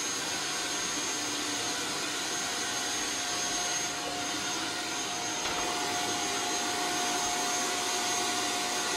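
A vacuum cleaner whirs steadily close by.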